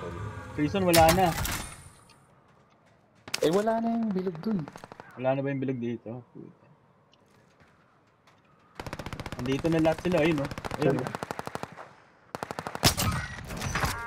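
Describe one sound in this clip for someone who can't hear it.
A rifle fires a sharp, loud shot.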